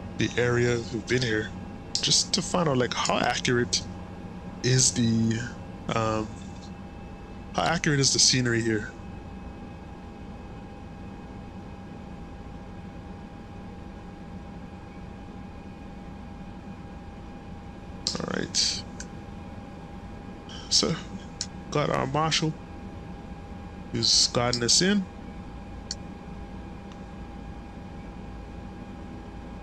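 An aircraft engine hums steadily.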